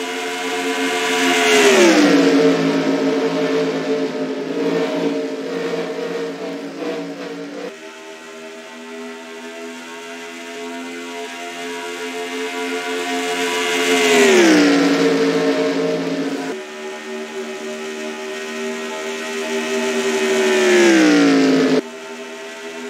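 Racing car engines roar loudly and drop in pitch as cars speed past, again and again.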